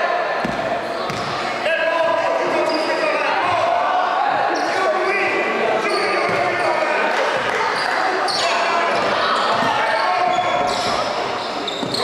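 Young players and spectators call out in a large echoing gym.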